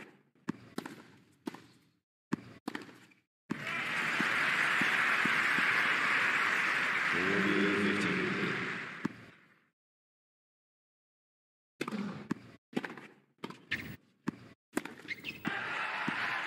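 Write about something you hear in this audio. Tennis balls are struck with sharp pops in a rally.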